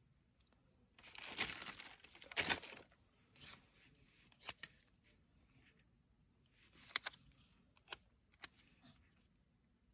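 Small paper pieces rustle and tap softly on a sheet of paper.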